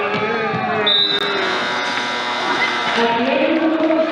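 A buzzer sounds loudly in a large echoing gym.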